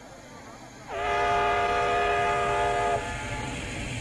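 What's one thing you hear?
A steam locomotive whistle blows steadily.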